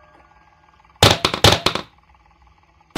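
A wooden plank drops and thuds onto a hard floor.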